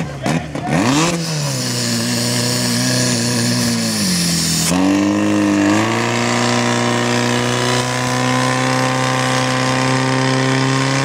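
A small petrol pump engine starts, revs up and roars steadily.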